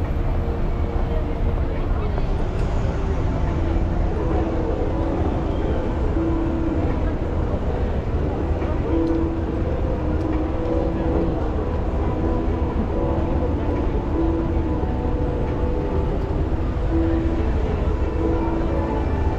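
Traffic hums steadily along a busy street.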